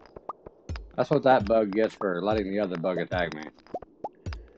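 A man speaks briefly and casually into a close microphone.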